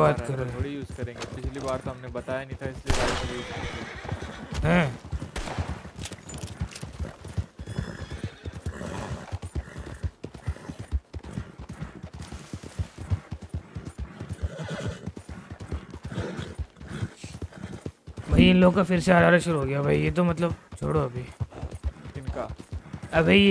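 Horse hooves clop steadily on a dirt trail.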